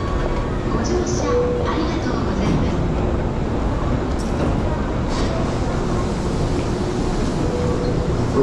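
A train idles at a platform with a low hum.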